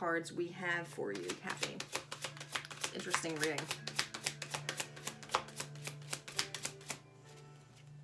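Small objects click and tap quickly in a woman's hands.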